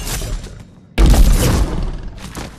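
A loud swooshing blast bursts out near the end.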